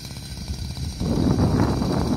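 A chainsaw revs loudly as it cuts into wood.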